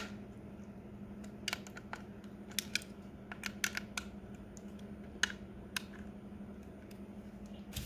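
A screwdriver clicks and scrapes against a plastic case.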